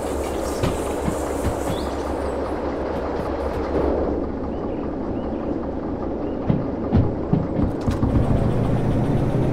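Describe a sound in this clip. Steel wheels clatter and knock over rail joints.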